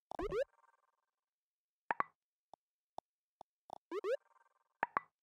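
A game menu opens with a quick rising chime.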